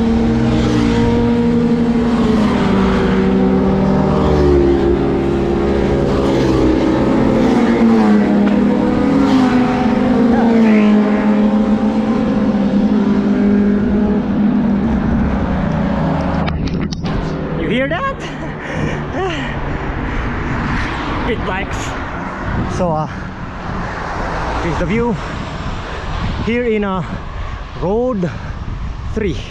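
Wind rushes past a bicycle riding fast on a road.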